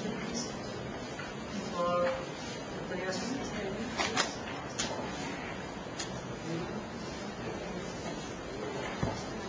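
A man speaks calmly into a microphone, heard from across a room.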